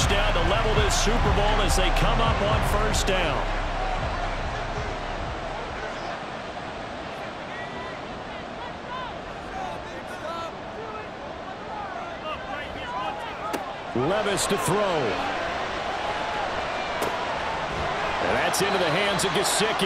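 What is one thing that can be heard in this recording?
A large stadium crowd roars and cheers.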